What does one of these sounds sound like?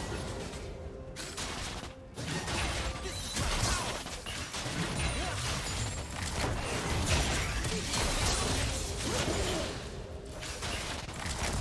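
Magic spells whoosh and crash in a busy video game battle.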